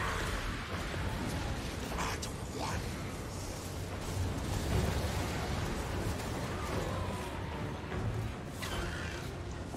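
Weapons clash and explosions rumble in a battle.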